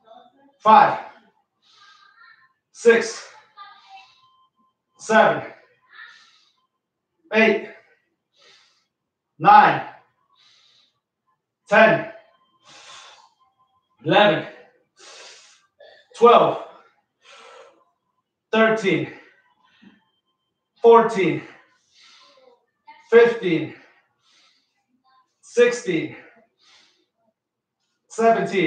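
A man grunts loudly with effort, once every couple of seconds.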